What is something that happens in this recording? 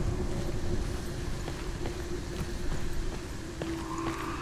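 Footsteps tread slowly on hard ground.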